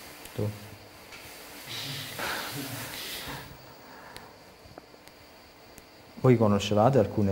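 A man speaks calmly and close by, in a slightly echoing room.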